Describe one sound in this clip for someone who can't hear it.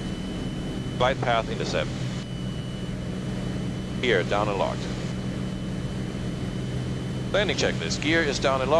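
A middle-aged man speaks calmly through a headset microphone, heard over the intercom.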